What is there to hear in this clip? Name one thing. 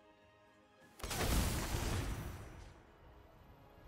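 A soft magical whoosh swells and fades.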